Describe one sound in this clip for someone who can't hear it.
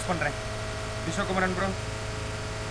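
A young man speaks briefly with animation into a close microphone.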